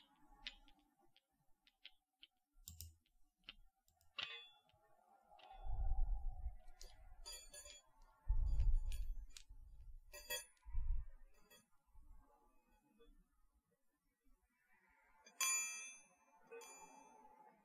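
A young woman whispers softly, very close to a microphone.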